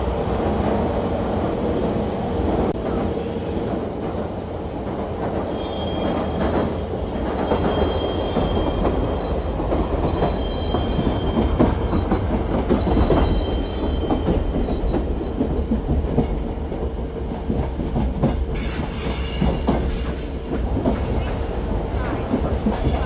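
A train engine rumbles steadily.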